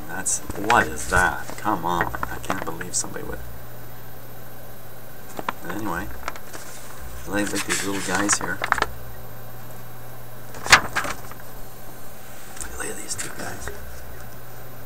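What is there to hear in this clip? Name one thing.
Paper pages rustle and flip as a book is leafed through.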